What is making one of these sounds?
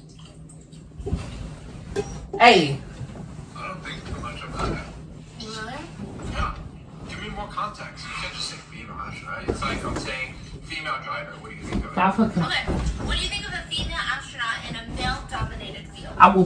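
Bedding rustles as a young man moves and stomps on a bed.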